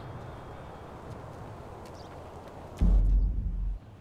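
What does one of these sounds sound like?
A heavy block thuds down onto a wooden crate.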